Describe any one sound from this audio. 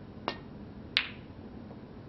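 Snooker balls knock together with a click.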